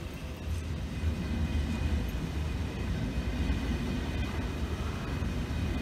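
A passenger train rumbles past on the tracks close by.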